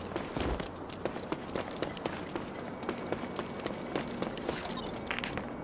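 Footsteps run quickly on a hard floor.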